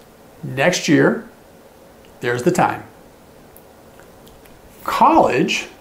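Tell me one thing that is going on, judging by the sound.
A middle-aged man speaks calmly and clearly into a nearby microphone, in short bursts with pauses.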